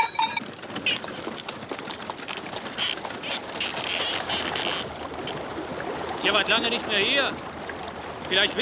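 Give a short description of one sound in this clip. Wooden cart wheels rattle and creak.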